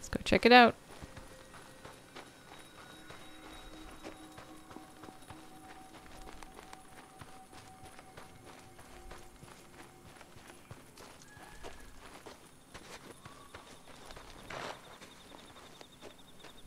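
Footsteps rustle through brush and crunch on the ground.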